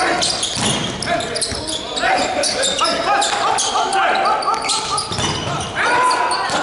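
Shoes squeak sharply on a hard court floor in a large echoing hall.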